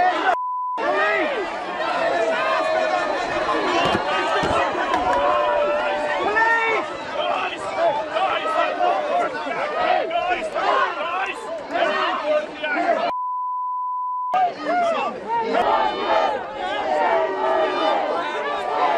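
A crowd of men and women shouts and jeers angrily close by.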